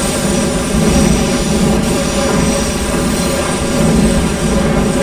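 A train motor hums steadily.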